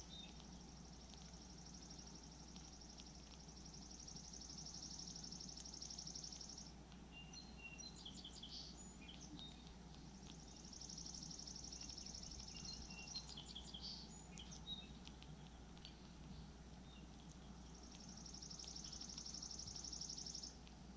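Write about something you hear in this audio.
A woodpecker taps and pecks at a feeder.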